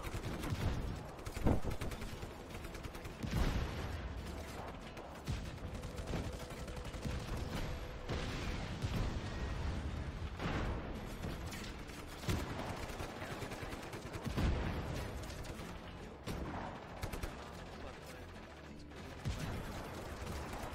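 Explosions roar and rumble.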